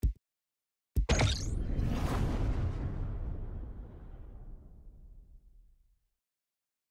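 A spaceship's engine roars as it launches and slowly fades away.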